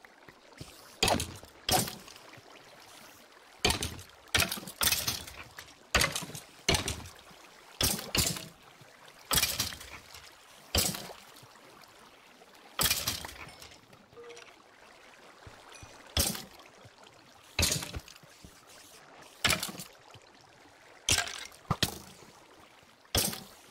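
Sharp blows strike again and again at an uneven pace.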